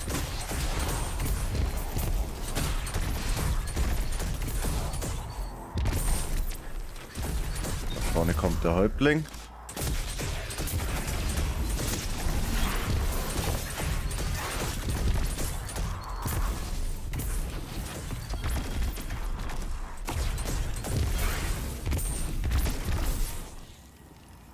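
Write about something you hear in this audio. Loud blasts boom and rumble.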